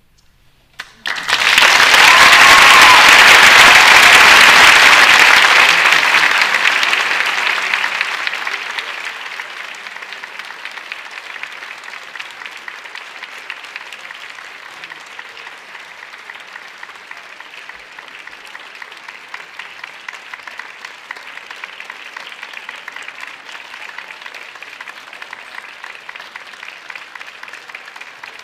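An audience claps loudly in a large hall, and the applause then dies down to a lighter, scattered clapping.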